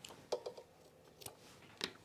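Scissors snip thread.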